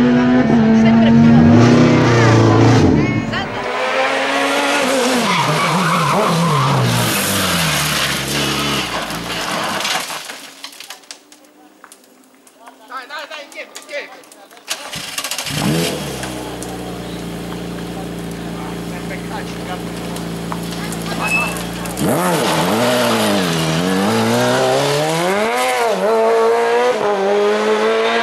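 A racing car engine roars loudly, revving up and down through gear changes.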